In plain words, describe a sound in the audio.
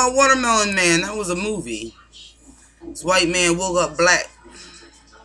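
A woman talks with animation close to a webcam microphone.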